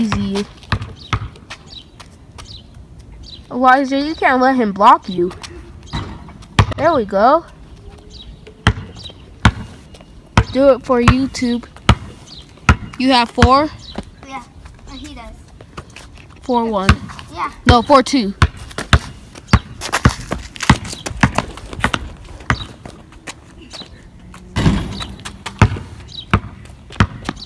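A basketball bounces on asphalt.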